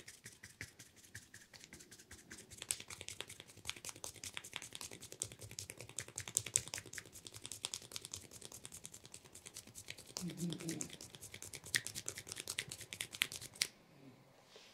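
Fingers rub and scratch briskly through hair with a close, crisp crackling.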